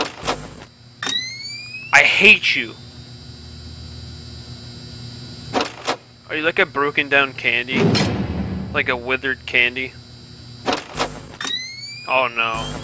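A monitor flips up with a short rising electronic whir.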